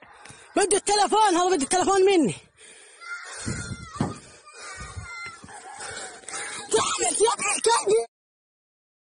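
A man shouts loudly nearby outdoors.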